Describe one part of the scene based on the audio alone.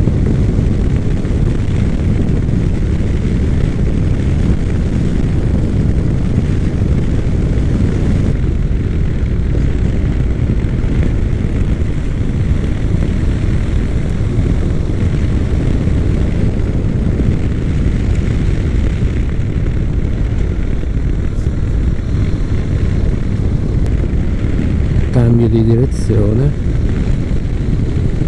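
A motorcycle engine hums steadily as it rides along.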